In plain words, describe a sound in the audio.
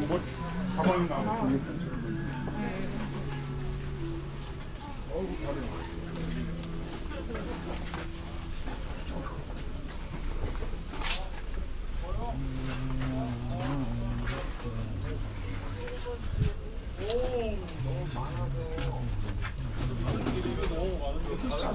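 Footsteps shuffle on pavement nearby.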